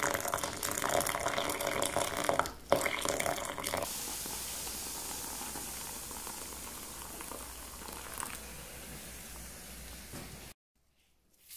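Hot water pours and splashes into a bowl from a kettle.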